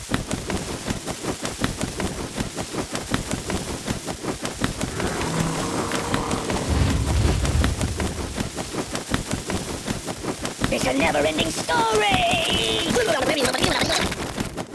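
Pigeons flutter and flap their wings.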